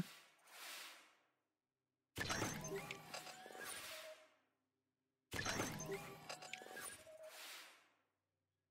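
Electronic laser beams zap and hum in bursts.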